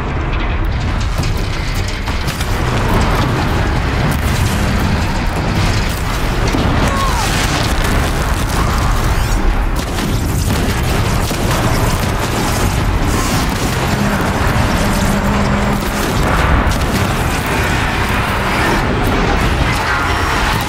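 A large robotic creature roars and clanks.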